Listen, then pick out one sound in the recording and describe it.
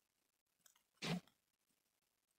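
A game menu click sounds once, sharp and short.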